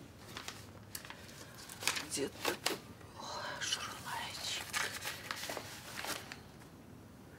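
Paper rustles.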